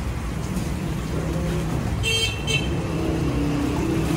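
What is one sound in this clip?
Water splashes as it is poured into a large metal pot.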